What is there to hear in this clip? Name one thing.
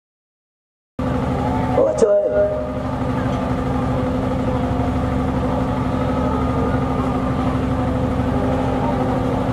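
A man speaks through loudspeakers.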